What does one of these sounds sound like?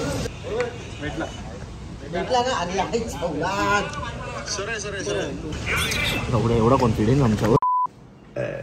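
A young man speaks into a phone close up.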